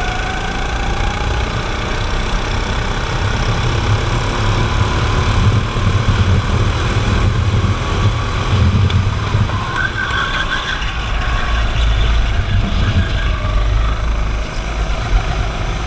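Other go-kart engines whine nearby.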